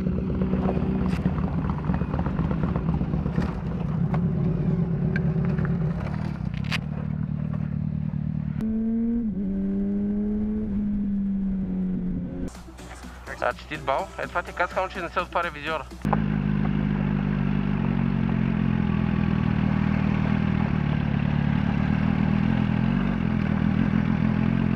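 A motorcycle engine rumbles steadily.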